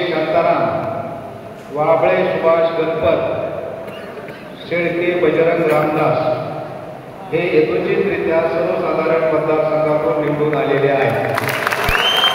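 A man speaks through a loudspeaker in a large echoing hall.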